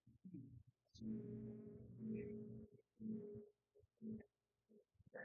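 A magical shield hums in low, steady bursts.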